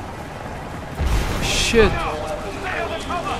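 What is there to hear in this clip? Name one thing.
A blast booms nearby.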